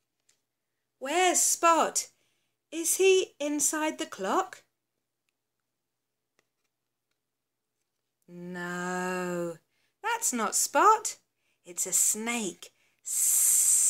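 A woman reads aloud with animation, close by.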